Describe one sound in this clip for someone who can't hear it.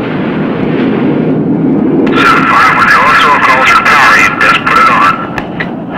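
A man speaks into a telephone.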